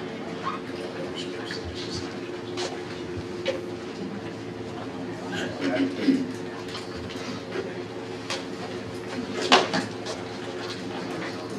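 Footsteps cross a hard floor in a large room.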